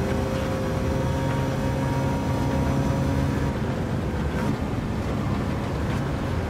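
A car engine roars loudly at high revs.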